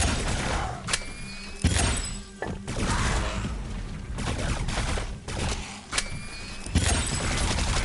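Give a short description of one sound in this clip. Sci-fi guns fire sharp energy blasts.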